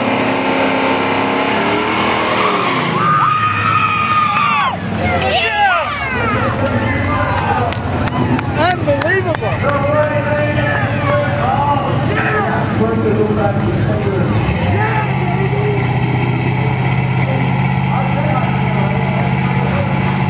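A car engine roars and revs loudly.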